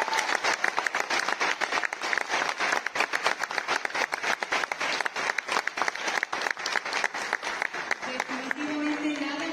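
An audience claps loudly in a large hall.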